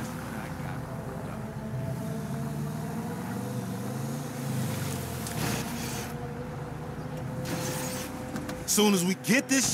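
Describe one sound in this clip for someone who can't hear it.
A car engine hums as the car rolls slowly.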